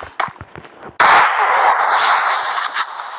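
A heavy burst whooshes as a wall forms in a puff of powder.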